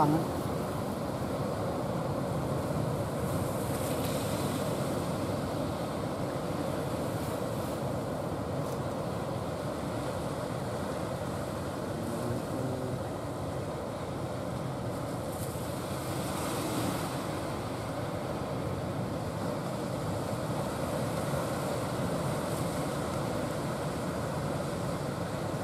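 Waves break and wash onto the shore steadily.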